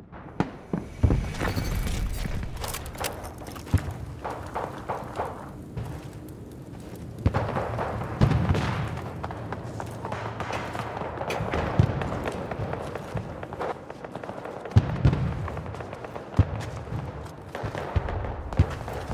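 Gunfire cracks in short, sharp bursts close by.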